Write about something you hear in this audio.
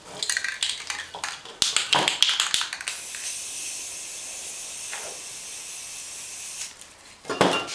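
A spray can hisses in short and long bursts.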